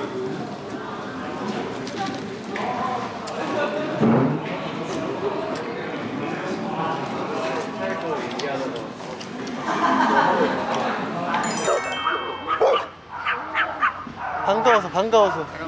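A young man talks nearby in a casual voice.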